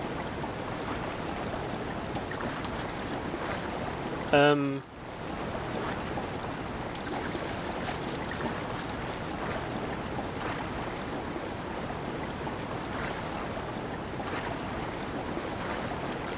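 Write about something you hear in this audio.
Water splashes steadily as a swimmer strokes through it.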